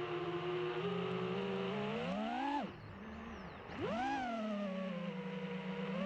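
Small drone motors whine steadily, surging higher, cutting out briefly, then surging again.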